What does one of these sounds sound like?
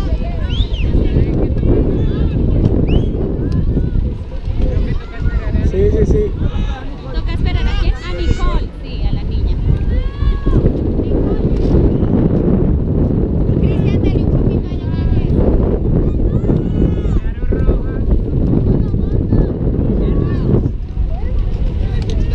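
A crowd of young people chatters and calls out nearby.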